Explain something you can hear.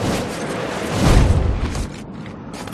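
A heavy thud sounds as a body lands hard on the ground.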